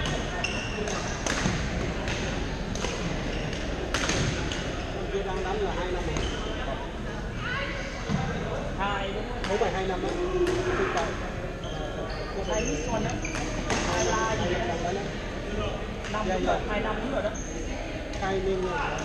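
Sneakers squeak on the hard floor.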